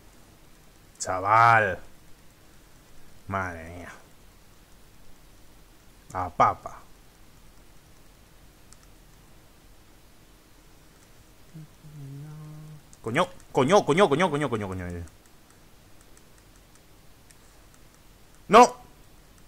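A young man talks in short bursts with animation into a close microphone.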